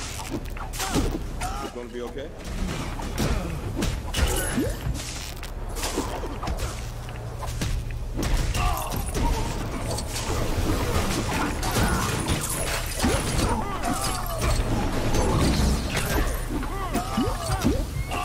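Electric zaps crackle again and again during a fight.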